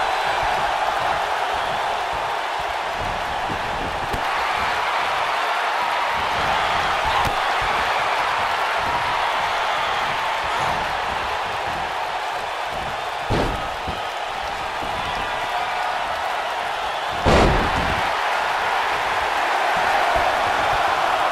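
A large arena crowd roars and cheers steadily.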